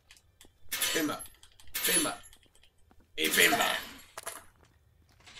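A heavy metal tool strikes iron bars with a loud clang.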